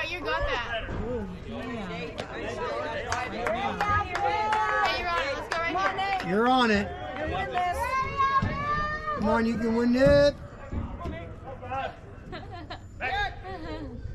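Young men shout and chatter across an open outdoor field.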